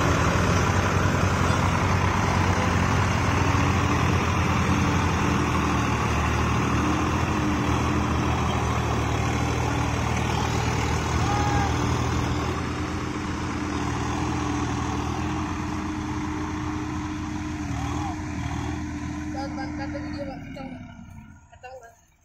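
Tractor diesel engines roar and strain loudly close by.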